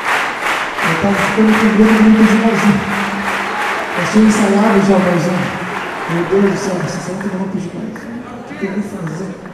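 A man speaks through loudspeakers in a large hall.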